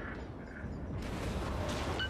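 Heavy naval guns boom.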